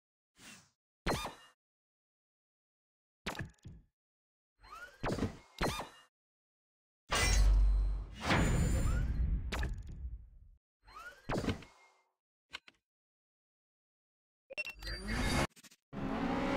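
Short electronic chimes and clicks sound from a game menu.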